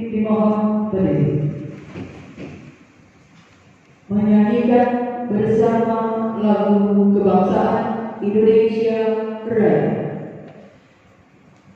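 A woman speaks loudly through a microphone in a large echoing hall.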